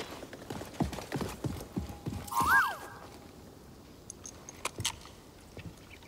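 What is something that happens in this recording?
Footsteps patter quickly over grass and rock.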